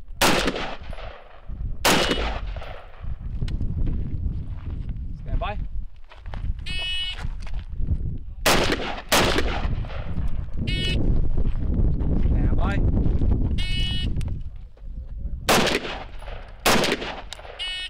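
A rifle fires loud single shots outdoors, echoing across open ground.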